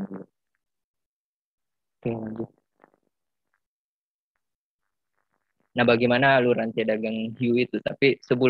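A young man speaks calmly into a microphone over an online call, with pauses.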